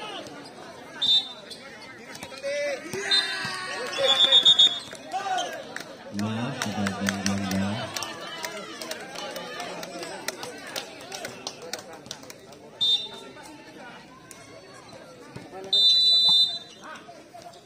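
A referee's whistle blows in short, sharp blasts.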